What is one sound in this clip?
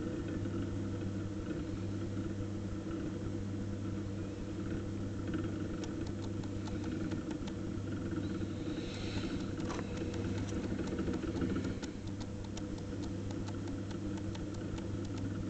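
A potter's wheel hums steadily as it spins.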